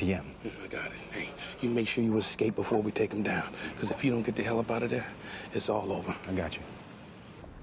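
Two men talk tensely at close range.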